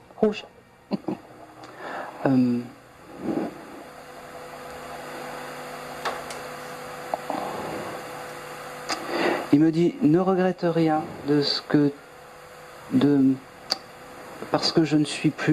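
A man speaks calmly into a microphone, heard through a loudspeaker in a room.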